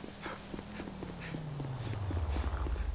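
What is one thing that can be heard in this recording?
A car engine approaches and grows louder.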